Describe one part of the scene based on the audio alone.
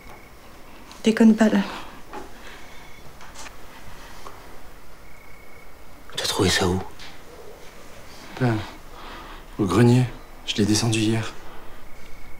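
A man speaks in short, tense bursts close by.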